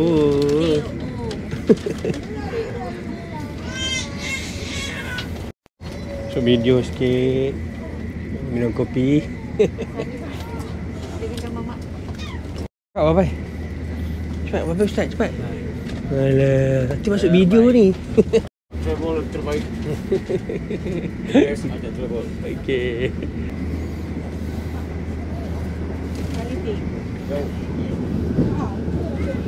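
A train hums steadily as it runs.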